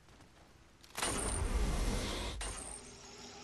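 An electric burst crackles and whooshes loudly.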